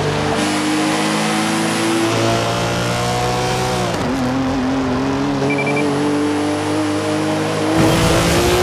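A car engine roars at high revs, rising in pitch as it accelerates.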